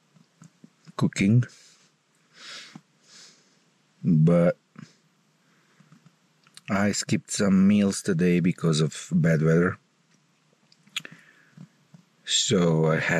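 A man speaks quietly and close by, in short bursts.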